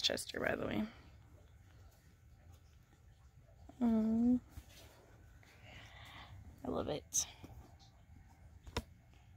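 Fabric rustles softly as a hand handles a sweatshirt.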